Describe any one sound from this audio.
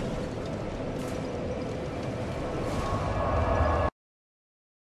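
A fire flares up with a whoosh.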